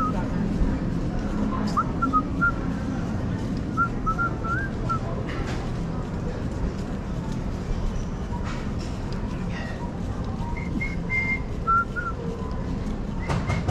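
Footsteps walk steadily across a hard floor in a large, echoing hall.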